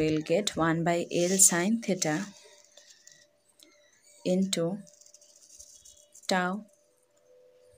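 A young woman speaks calmly, explaining as she goes.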